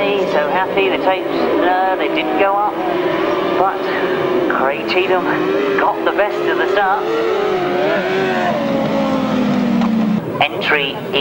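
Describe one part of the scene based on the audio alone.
Motorcycle engines roar and rev across an open field.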